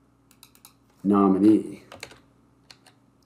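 A man speaks briefly and calmly into a nearby microphone.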